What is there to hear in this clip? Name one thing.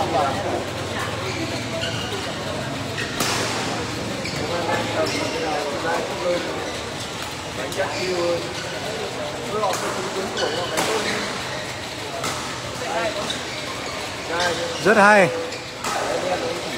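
Shuttlecocks are struck sharply by rackets in a large echoing hall.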